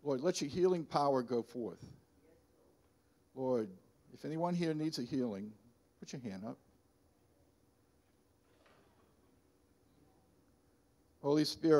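An elderly man speaks with animation into a microphone, pausing between phrases.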